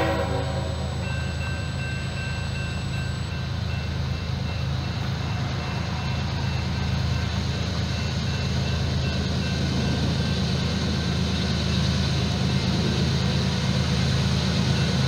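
A railroad crossing bell rings in steady, rapid dings.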